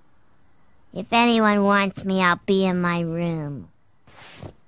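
A young girl speaks in a flat, bored voice.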